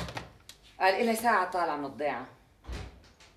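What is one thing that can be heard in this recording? A middle-aged woman speaks with animation nearby.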